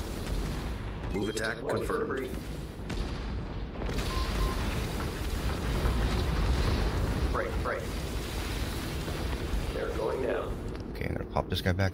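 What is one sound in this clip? Laser weapons fire in rapid bursts.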